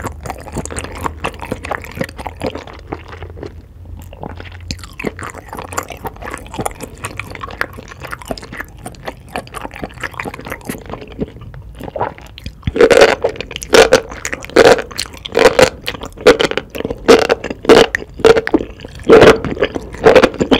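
A woman chews sticky food with wet, squelching sounds close to a microphone.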